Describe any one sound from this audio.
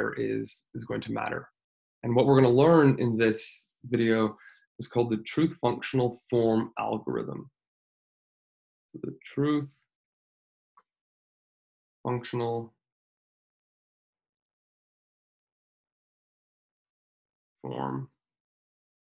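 A man speaks calmly into a close microphone, pausing often.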